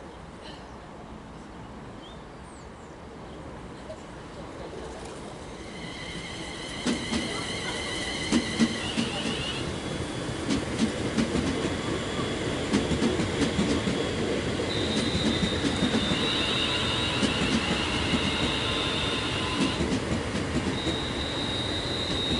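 A train approaches and rumbles past close by.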